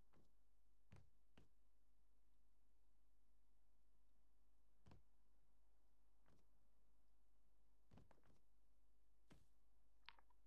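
Footsteps thud softly on a wooden surface.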